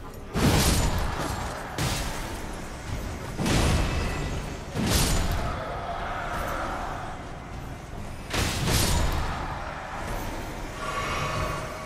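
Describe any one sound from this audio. Heavy blades clash and strike in a fight.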